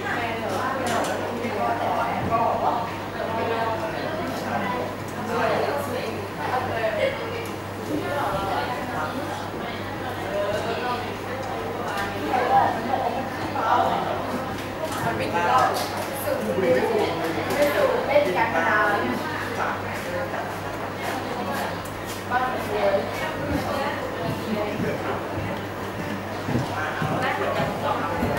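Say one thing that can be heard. A young woman speaks calmly through a microphone in an echoing room.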